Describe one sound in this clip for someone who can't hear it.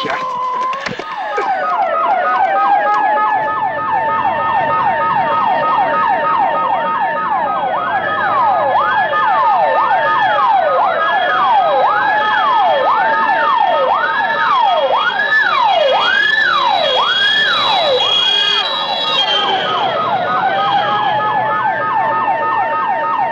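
Several sirens wail loudly, rising and falling.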